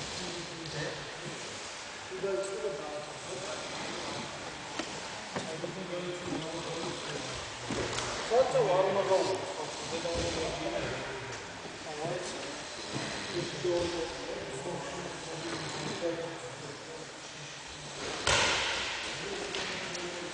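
Men talk in a large echoing hall.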